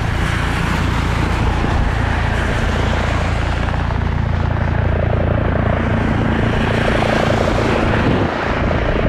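A helicopter approaches overhead with a loud, steady thudding of rotor blades and engine whine.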